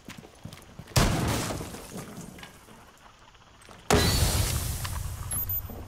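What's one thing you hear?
A wooden wall is smashed open, splintering and crashing.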